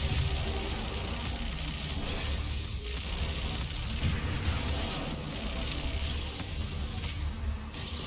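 A plasma gun fires rapid crackling shots.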